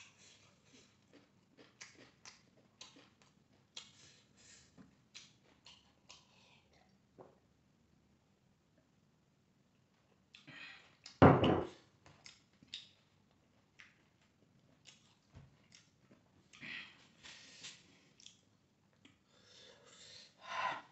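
A man chews and smacks his lips loudly, close to the microphone.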